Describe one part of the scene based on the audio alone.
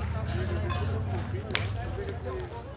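Metal boules clack against each other on gravel.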